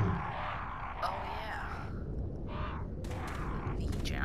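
Crows caw nearby.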